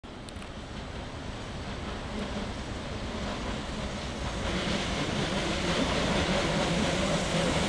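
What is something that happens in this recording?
A train approaches on the rails, its rumble growing steadily louder.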